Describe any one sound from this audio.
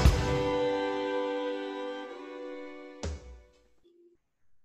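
Music plays with a sustained chord and then stops.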